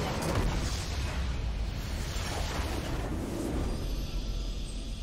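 Explosions and magical blasts boom in a game battle.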